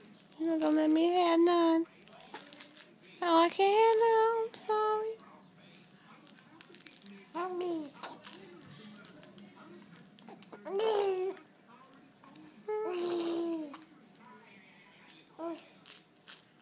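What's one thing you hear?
A woman speaks in a high, playful, sing-song voice close by.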